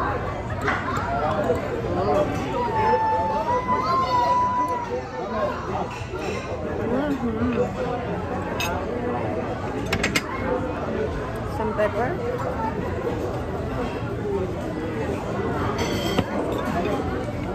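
Many voices murmur and chatter in a busy, echoing room.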